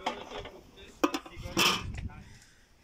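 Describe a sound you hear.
A metal lid clanks onto a pot.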